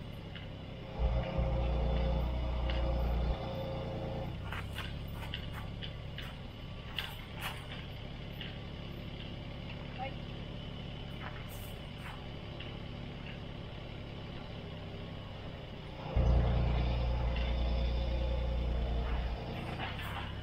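An excavator engine revs up loudly.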